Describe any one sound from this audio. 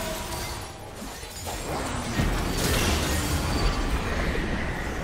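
Magic spells crackle and burst in a fantasy battle game.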